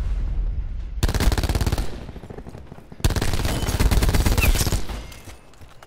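A machine gun fires in rapid bursts.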